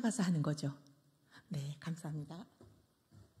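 A woman speaks into a microphone in an echoing room.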